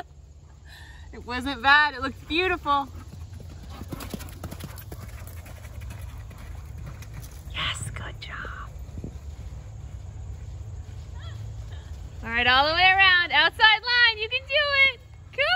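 A horse's hooves thud softly on sandy ground.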